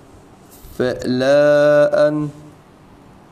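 A man chants in a long, drawn-out melodic voice close to a microphone.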